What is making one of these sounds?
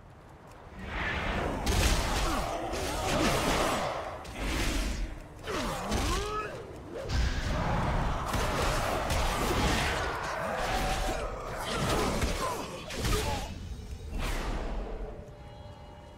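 Blades clash and strike with sharp impacts.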